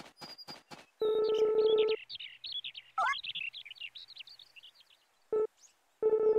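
A bright electronic chime sounds in short bursts.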